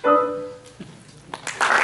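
A piano chord rings out in a large hall and fades.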